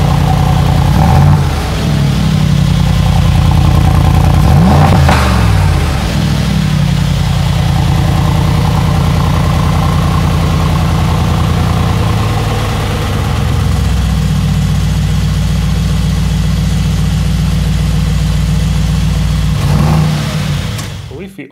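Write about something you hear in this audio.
A car engine revs up sharply a few times and settles back.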